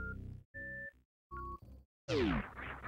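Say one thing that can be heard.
Retro video game sound effects beep and blip.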